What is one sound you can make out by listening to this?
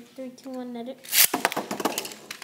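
A launcher rips a spinning top into a plastic arena with a sharp burst.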